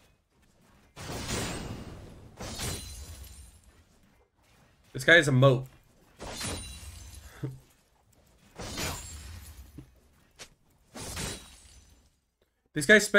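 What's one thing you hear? Game effects clash and whoosh.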